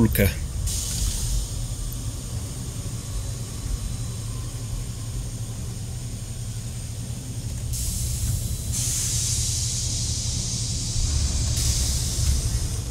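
Steam hisses steadily from a machine.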